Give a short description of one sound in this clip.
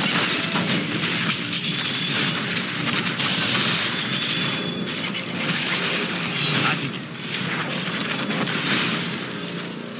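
Fiery spells crackle and explode in a fast game battle.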